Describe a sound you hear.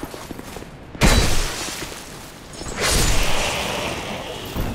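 A spear strikes with a heavy impact.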